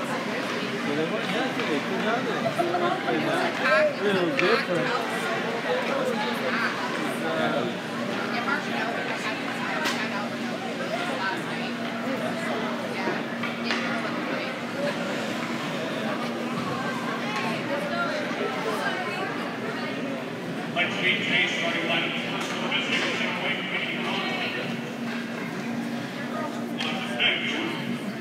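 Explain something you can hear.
A crowd of spectators chatters throughout, echoing in a large hall.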